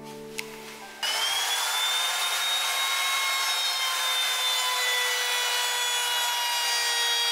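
A wood router whines at high speed.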